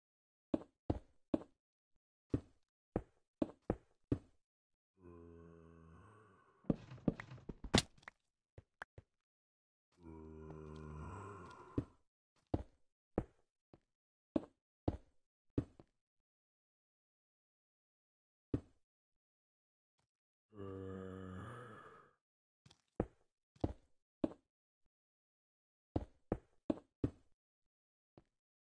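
Stone blocks crack under a pickaxe in quick, sharp knocks.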